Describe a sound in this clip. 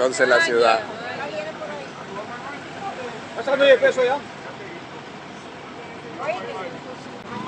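Passengers talk nearby.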